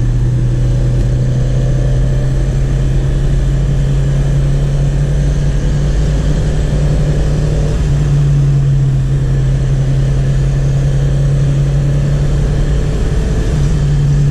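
A car engine hums steadily from inside the cabin, with its pitch shifting slightly.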